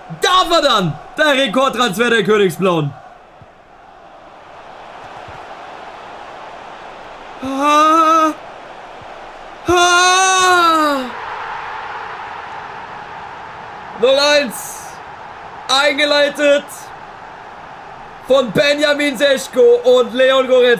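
A young man talks loudly and with animation, close to a microphone.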